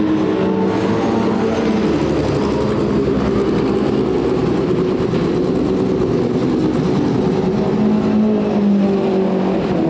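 A racing car engine idles with a deep, rough burble close by.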